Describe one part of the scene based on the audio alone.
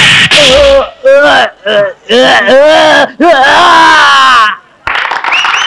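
A man shouts and sings in strained bursts.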